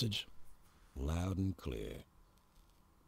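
A second man answers in a low, firm voice.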